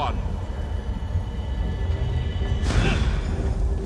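A magical beam of light hums and crackles steadily.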